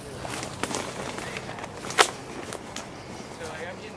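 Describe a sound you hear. Dry wood knocks and scrapes as a man drags a branch.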